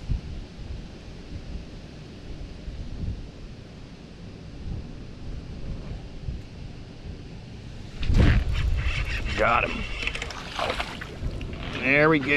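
A fishing reel clicks as its handle is wound.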